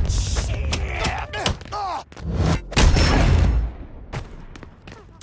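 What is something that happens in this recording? Fists strike a body in heavy, quick blows.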